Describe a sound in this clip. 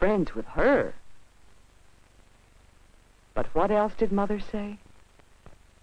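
A young boy speaks slowly and thoughtfully, close by, in short phrases.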